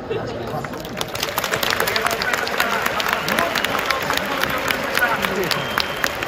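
A large crowd murmurs and claps.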